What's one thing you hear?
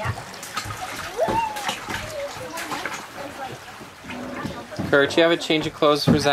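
A baby splashes water in a plastic bucket.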